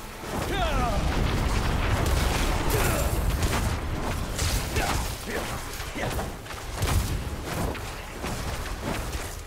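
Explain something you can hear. Electric zaps crackle in a game.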